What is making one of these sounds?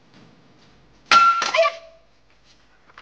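Dishes clatter.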